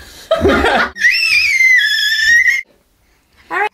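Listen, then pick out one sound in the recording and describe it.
A baby cries loudly.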